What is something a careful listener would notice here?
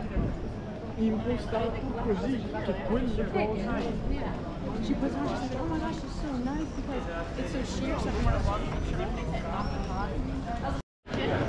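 Men and women chat nearby as they stroll past outdoors.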